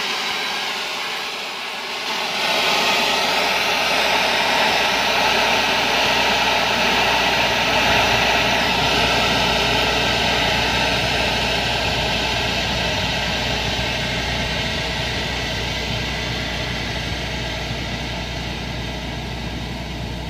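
A heavy machine engine rumbles steadily.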